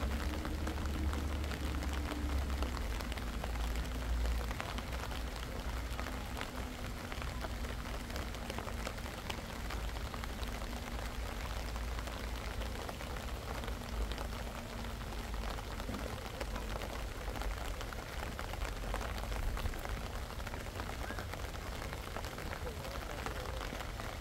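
Light rain patters steadily on paths and plants outdoors.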